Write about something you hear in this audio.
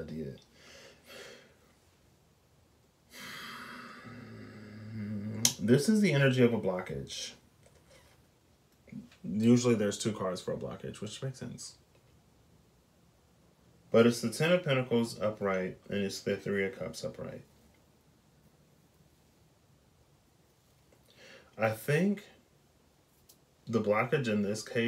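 A man speaks calmly and with animation, close by, in short bursts with pauses.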